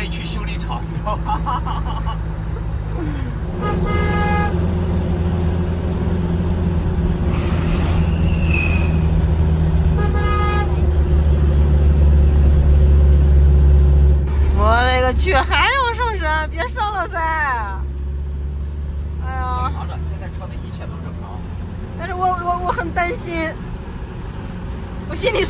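A truck's engine hums steadily.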